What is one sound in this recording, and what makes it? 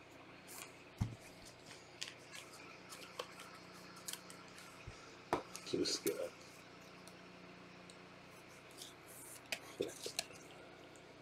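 Cards tap and click against each other.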